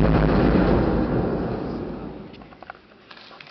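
An audience murmurs in a large hall and gradually falls quiet.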